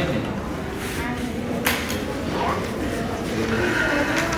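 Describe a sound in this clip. Sheets of paper rustle close by.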